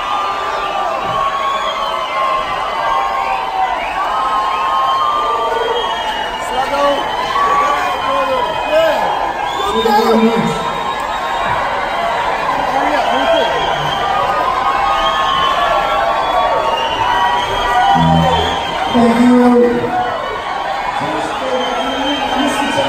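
A live band plays loudly on an outdoor stage.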